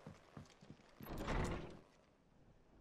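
A heavy wooden door creaks and bangs open.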